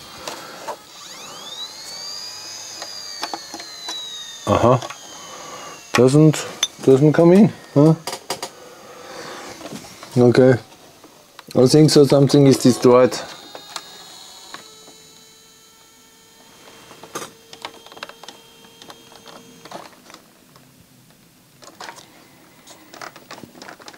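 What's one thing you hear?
Small plastic and metal parts click and rattle under handling.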